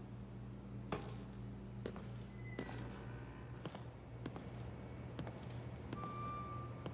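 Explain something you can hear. Slow footsteps fall on a hard floor.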